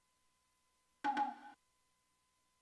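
A short electronic chime confirms a menu choice.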